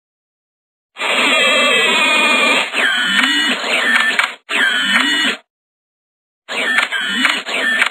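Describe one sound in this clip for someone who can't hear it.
Calculator keys beep as they are pressed.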